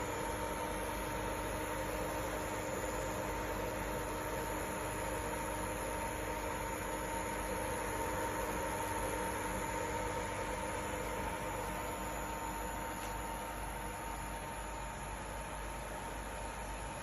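Water bubbles and simmers in a pot.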